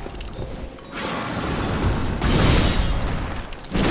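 A blade swishes through the air with heavy impacts.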